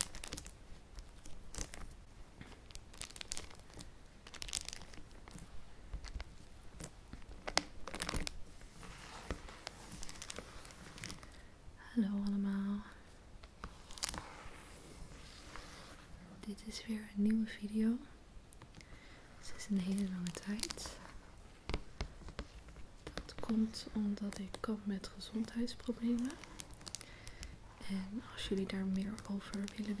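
Hands rub and tap on crinkly plastic packaging up close.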